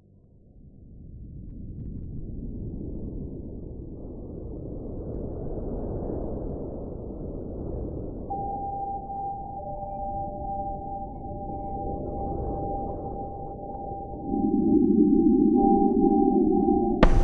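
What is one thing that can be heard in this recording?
Strong wind roars through trees outdoors.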